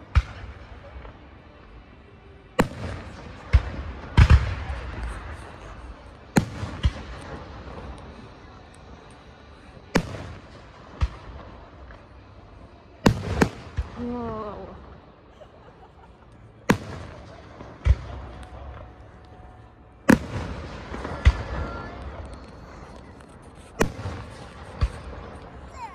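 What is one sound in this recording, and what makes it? Distant fireworks shells burst with sharp booms that echo across open ground.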